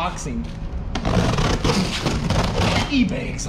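Cardboard scrapes and rustles across a concrete floor.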